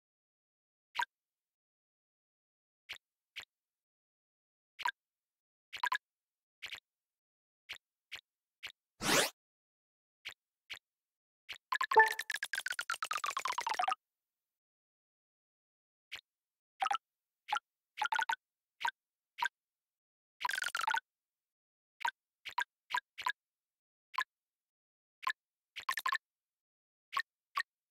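Short bright game chimes blip again and again as tiles are picked up.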